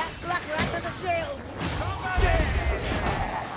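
A fiery blast bursts with a loud boom.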